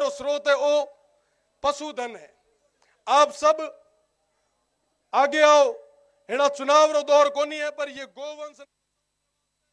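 A young man speaks forcefully into a microphone over loudspeakers, outdoors.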